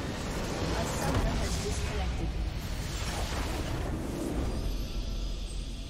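Loud explosive battle effects crash and boom.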